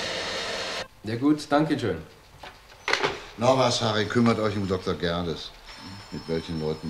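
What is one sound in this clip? A man speaks calmly into a telephone close by.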